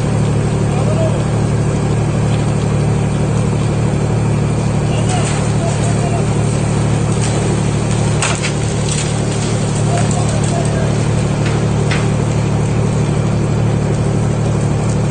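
A heavy truck engine rumbles steadily outdoors.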